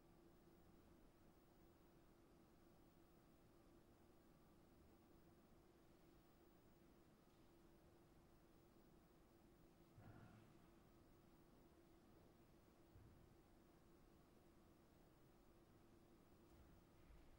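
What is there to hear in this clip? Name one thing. A brass instrument holds a soft, steady low note in a quiet hall.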